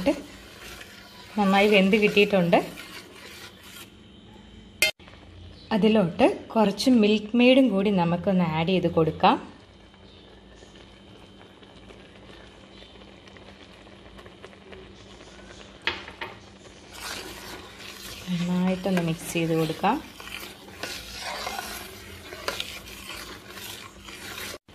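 A metal spatula scrapes and stirs in a pan of liquid.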